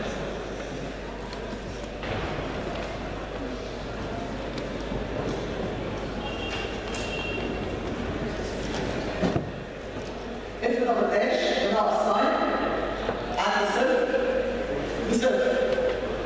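A marker squeaks and taps softly on a whiteboard.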